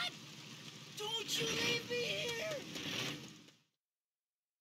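A man shouts pleadingly.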